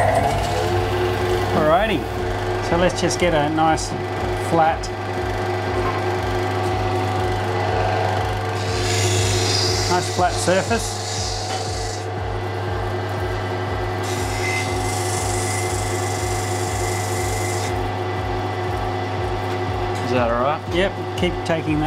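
A grinding wheel whirs steadily.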